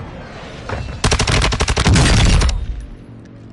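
A rapid burst of automatic gunfire rattles loudly and briefly.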